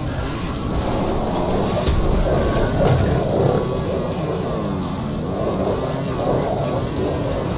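A motorcycle engine roars steadily as the bike rides over rough ground.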